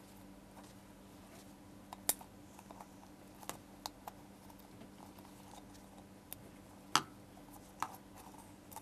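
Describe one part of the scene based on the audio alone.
Paper crinkles and rustles as hands fold it over a cup.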